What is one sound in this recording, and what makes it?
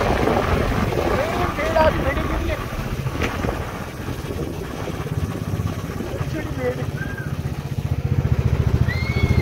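A motorcycle engine chugs while riding.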